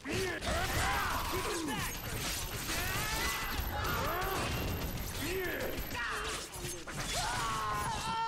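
Claws slash and strike in a close fight.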